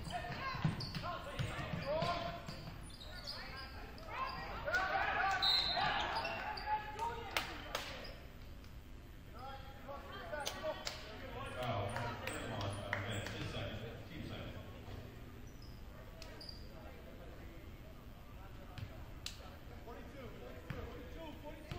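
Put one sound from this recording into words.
A basketball bounces on the hardwood floor.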